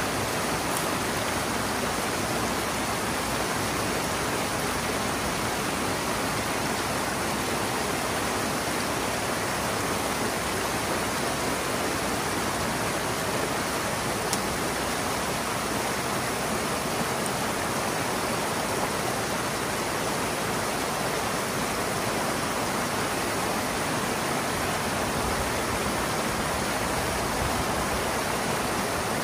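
Foamy water gushes and splashes steadily over the ground.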